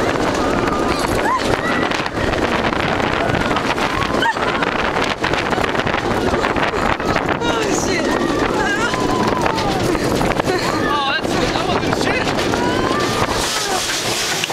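Riders scream and shout with excitement.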